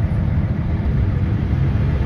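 A passing car whooshes by.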